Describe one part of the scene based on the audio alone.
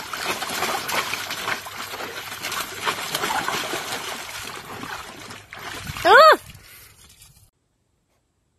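A dog splashes water with its paws and snout.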